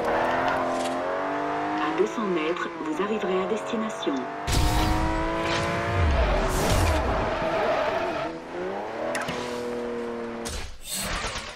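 A car engine roars and revs up through the gears at high speed.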